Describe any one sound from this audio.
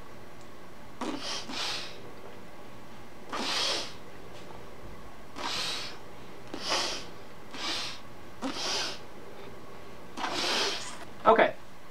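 A young woman blows out puffs of air from her cheeks.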